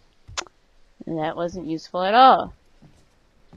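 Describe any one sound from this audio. A young woman speaks briefly and with animation into a close microphone.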